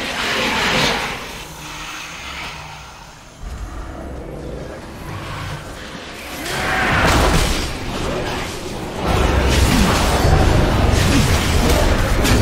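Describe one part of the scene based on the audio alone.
Magic blasts and weapon clashes ring out in a fast game battle.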